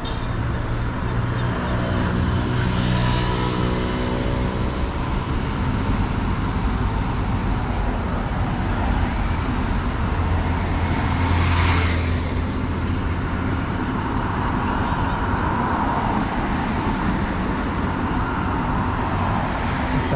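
Cars drive past close by on a city street.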